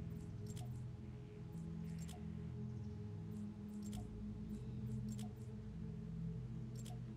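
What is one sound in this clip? Soft interface clicks sound as menu items are selected.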